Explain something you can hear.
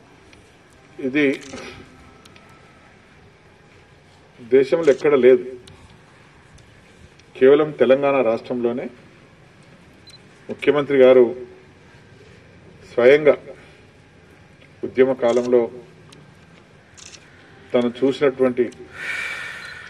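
An elderly man speaks into a microphone in short, measured phrases with long pauses.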